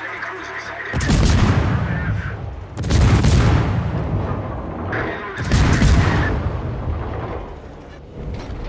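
Heavy naval guns fire in loud, booming blasts.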